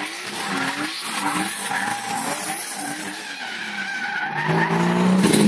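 A car engine revs hard as the car drifts past.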